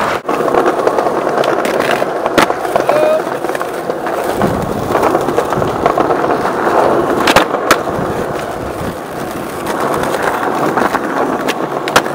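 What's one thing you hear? Skateboard wheels roll and rumble over smooth stone paving.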